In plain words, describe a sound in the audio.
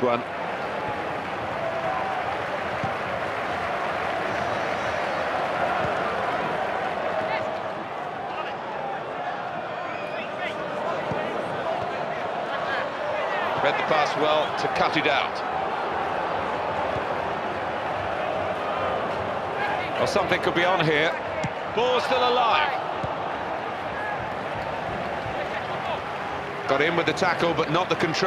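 A stadium crowd roars steadily, with loud swells of cheering.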